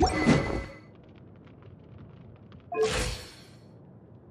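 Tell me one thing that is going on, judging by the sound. A heavy club swings through the air with a whoosh.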